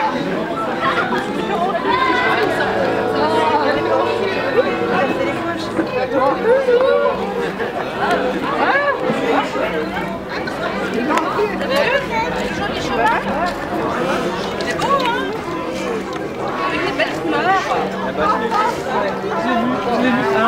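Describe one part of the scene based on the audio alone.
A crowd of adults and children chatters nearby outdoors.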